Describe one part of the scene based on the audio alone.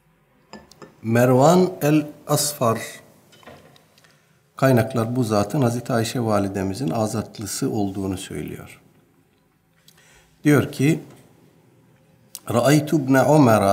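A middle-aged man speaks calmly and steadily into a close microphone.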